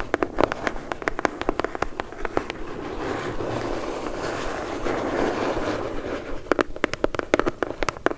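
Long fingernails tap and click on a cardboard box close up.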